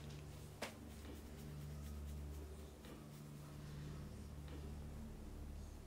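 Footsteps scuff softly on pavement.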